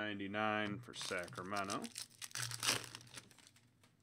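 A foil card wrapper crinkles and tears.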